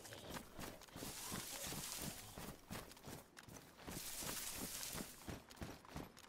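Leafy bushes rustle and swish as someone pushes through them.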